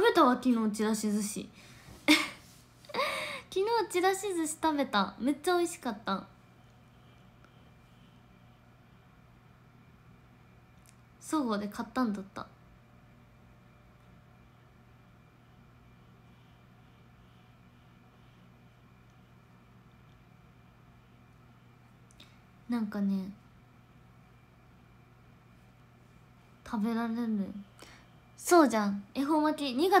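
A young woman talks close to a microphone, with animation and long pauses.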